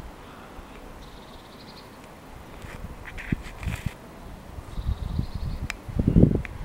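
Birds call faintly overhead.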